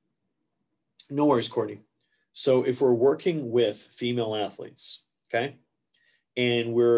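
A man speaks calmly into a microphone, as if giving a lecture over an online call.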